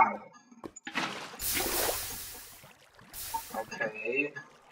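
Water gushes and splashes out briefly.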